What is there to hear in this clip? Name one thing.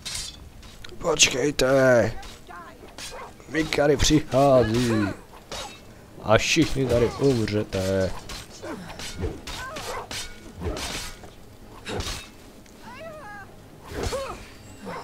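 A man grunts and shouts in pain.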